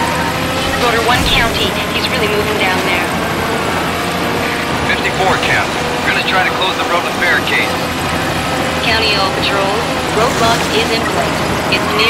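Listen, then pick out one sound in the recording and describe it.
A young woman talks now and then, close to a microphone.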